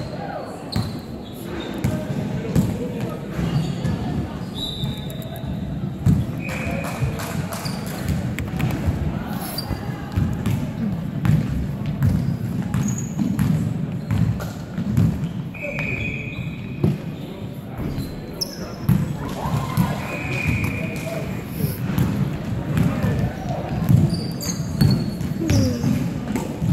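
Men call out to each other during play, echoing in the hall.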